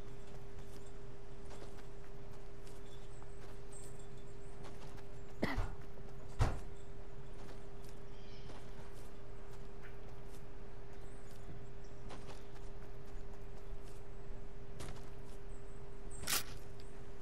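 A game character's footsteps run quickly over the ground.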